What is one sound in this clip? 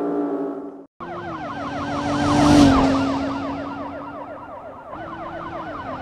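A police siren wails with a fast warble.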